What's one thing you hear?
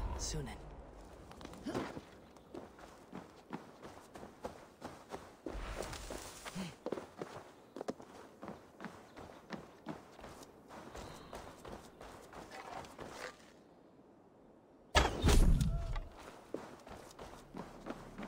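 Footsteps crunch steadily on dirt and wooden boards.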